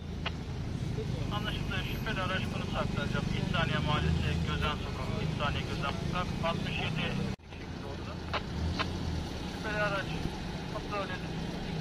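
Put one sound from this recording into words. Men talk to each other nearby, calmly but urgently.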